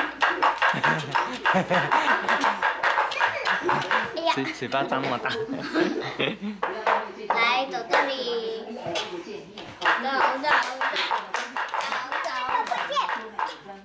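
A young woman talks playfully to a child.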